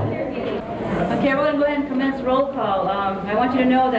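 A middle-aged woman reads out through a microphone and loudspeaker.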